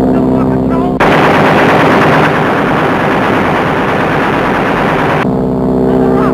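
A machine gun fires in a rapid burst.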